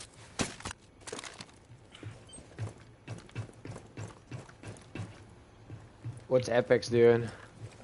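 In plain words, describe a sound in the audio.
Footsteps thud quickly on stairs.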